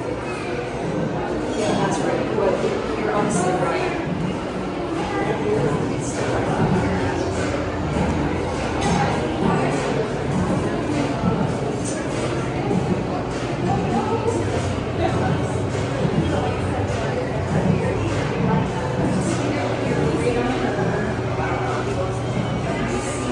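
Several people talk in a low murmur in a room.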